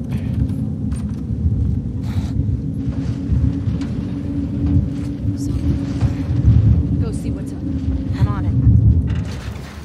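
A metal door rattles and thuds as it is pushed and shaken.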